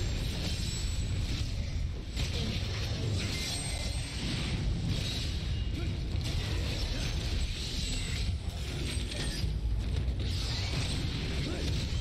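Metal blades clash and slash in a fight.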